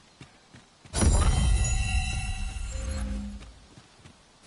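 A magical blast bursts with a deep rumbling whoosh.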